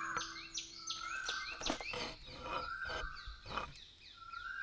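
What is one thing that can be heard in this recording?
A hand saw cuts through wood.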